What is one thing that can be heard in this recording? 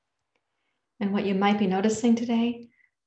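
A woman speaks calmly and softly close to a microphone.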